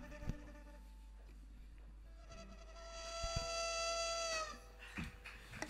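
A small band plays and holds a long final note.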